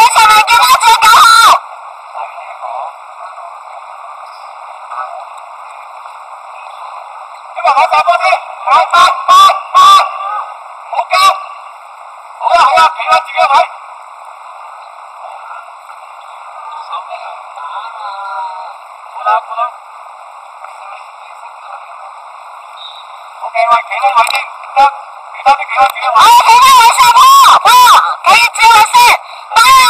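Young players shout to each other outdoors.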